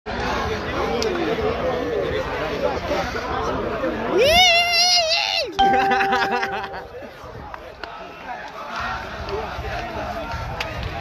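A crowd cheers and chatters outdoors.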